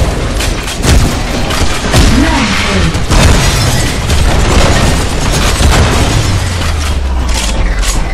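A heavy gun fires rapid shots.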